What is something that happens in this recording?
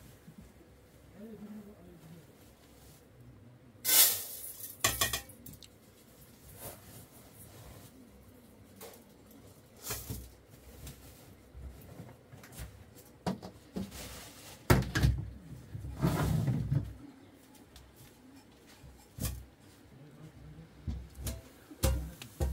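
Dishes and pots clink and clatter as they are moved about.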